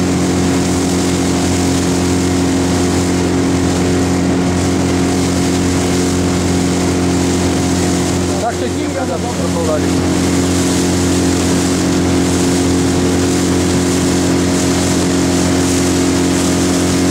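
Water rushes and splashes against a moving boat.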